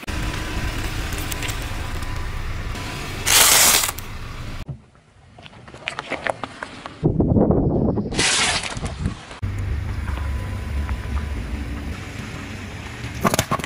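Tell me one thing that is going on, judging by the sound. A car tyre rolls over and squashes soft objects.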